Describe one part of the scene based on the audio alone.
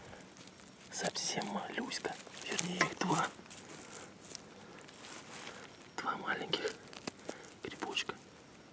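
Fingers rustle through dry pine needles and moss.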